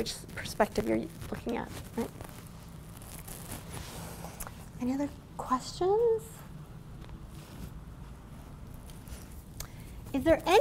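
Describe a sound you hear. A woman speaks with animation, in pauses.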